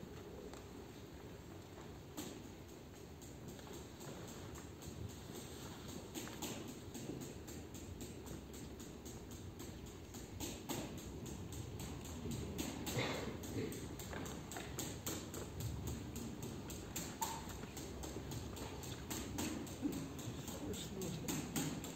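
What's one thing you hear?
A group of dancers makes quick clicking and clapping sounds with their hands.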